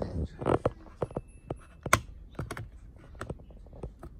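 A battery clicks into place in a plastic compartment.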